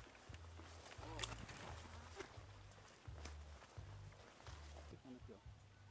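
Footsteps rustle through tall dry grass.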